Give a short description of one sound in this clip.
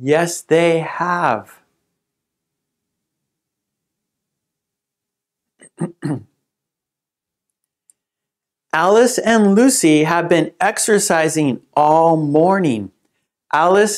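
A man speaks slowly and clearly into a close microphone, reading out short sentences.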